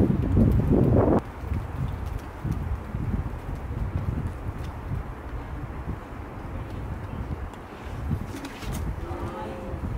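A hanging wooden box knocks and rattles as a leopard tugs at it.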